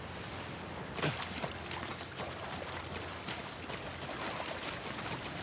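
Feet splash through shallow water.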